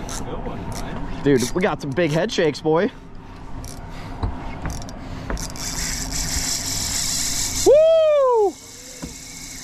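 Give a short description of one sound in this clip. A fishing reel whirs and clicks as its handle is cranked.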